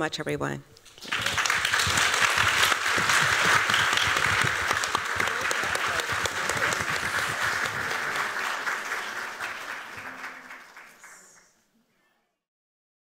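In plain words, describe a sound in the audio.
An audience applauds in a large hall, then the applause fades.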